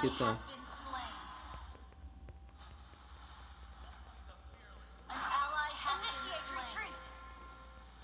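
Game sound effects of magic spells burst and chime.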